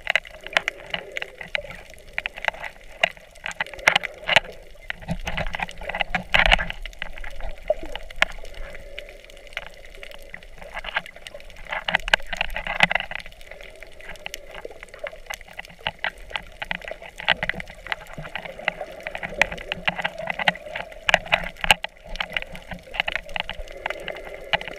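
Water swishes and crackles, heard from underwater.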